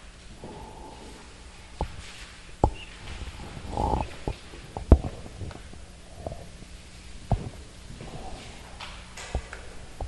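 A felt eraser thumps and rubs against a chalkboard.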